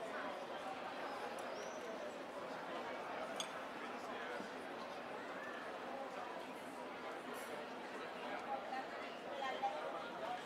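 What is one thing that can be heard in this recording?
Men and women chat in a lively murmur nearby, outdoors.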